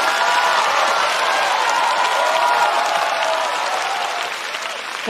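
A crowd applauds loudly, then the applause slowly fades.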